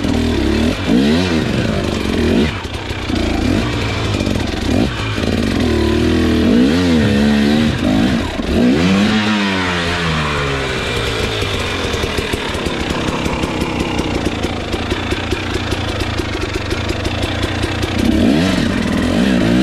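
A dirt bike engine revs up and down, close by.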